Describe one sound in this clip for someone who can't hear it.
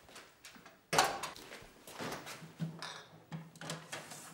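A refrigerator door opens.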